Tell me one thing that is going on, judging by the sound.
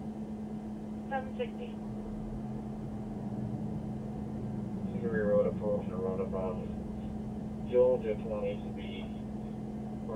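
A man speaks calmly nearby, heard through a microphone.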